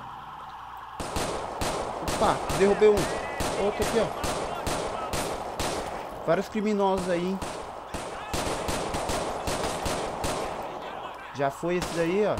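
Pistol shots ring out in rapid bursts.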